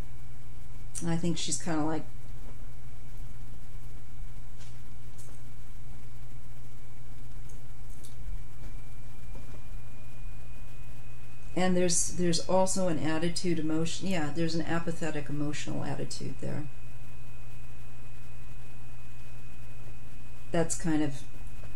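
A woman speaks calmly and close to a microphone, in short bursts with pauses.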